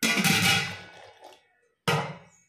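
A spoon stirs thick batter in a metal pot, scraping against the sides.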